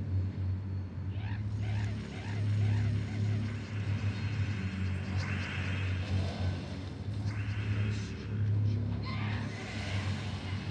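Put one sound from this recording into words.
Game sound effects chime and burst as gems explode.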